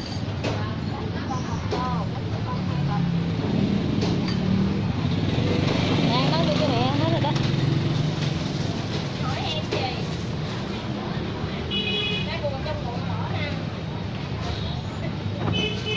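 A middle-aged woman talks with a customer.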